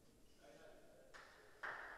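Footsteps scuff on a hard court in a large echoing hall.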